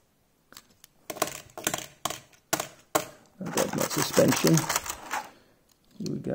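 Stiff plastic packaging crinkles and clatters.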